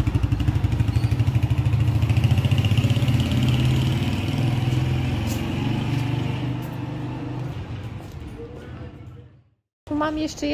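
A motorbike engine rumbles nearby and slowly fades away.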